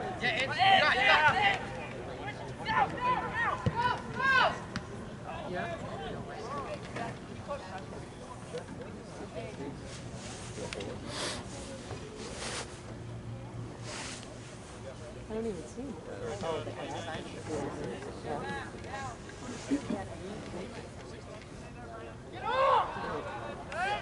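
Young men shout to each other across an open field at a distance.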